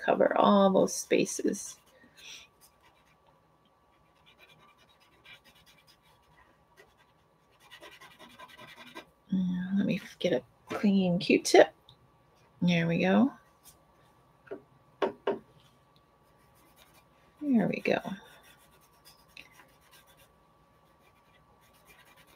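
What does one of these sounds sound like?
Fingers rub and smudge crayon softly across paper.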